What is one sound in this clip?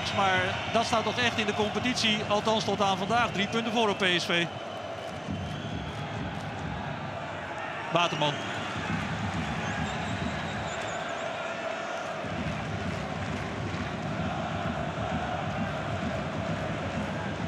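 A large crowd murmurs and chants steadily in an open stadium.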